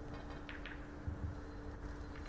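A cue tip strikes a billiard ball with a sharp click.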